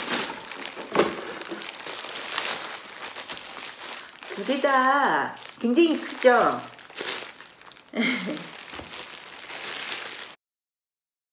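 Plastic bags crinkle and rustle.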